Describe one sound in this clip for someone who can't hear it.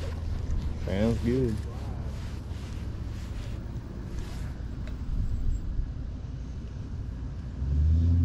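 Water laps gently against a wooden dock.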